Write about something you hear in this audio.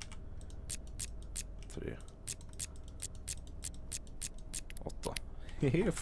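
A combination lock's dial clicks quickly, turn by turn.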